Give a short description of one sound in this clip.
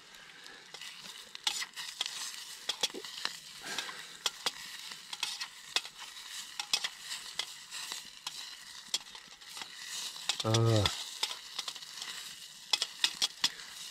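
A metal spoon scrapes and clinks inside a small pot.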